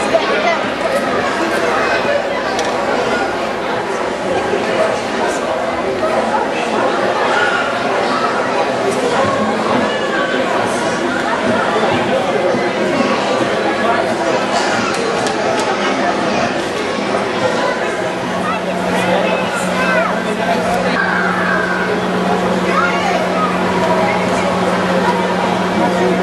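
A crowd chatters loudly all around in a large echoing hall.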